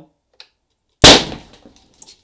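A large balloon bursts with a loud bang.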